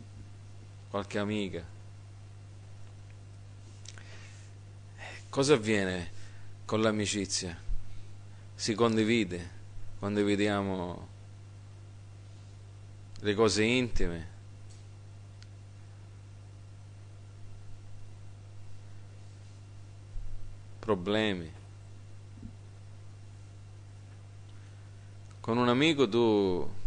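A middle-aged man speaks slowly and deliberately through a microphone, with long pauses.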